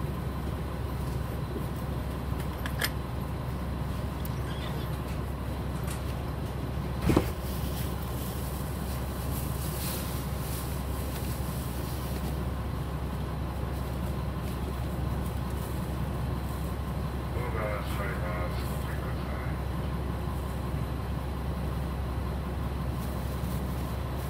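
A diesel railcar idles at a platform, heard from inside.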